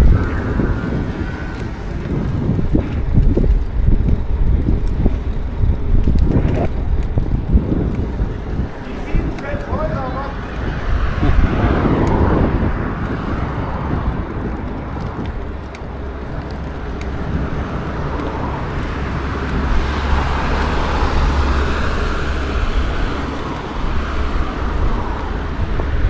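Bicycle tyres rumble over paving stones.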